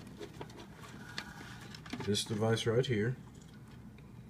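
Wires rustle and click as a hand handles them.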